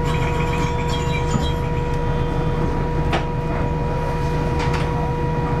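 A train's motor gives off a steady, high whine.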